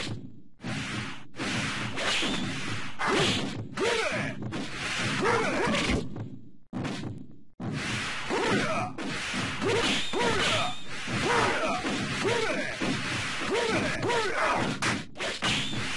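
Swords swish and strike with sharp, punchy impacts.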